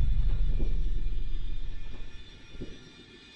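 A huge explosion roars with a deep, heavy rumble that fades away.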